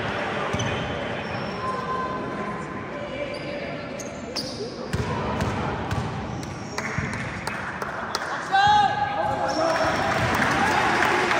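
Sneakers squeak sharply on a gym floor, echoing in a large hall.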